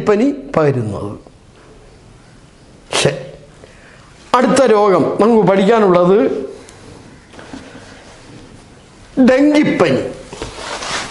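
A middle-aged man speaks calmly and clearly, as if teaching, in a room with a slight echo.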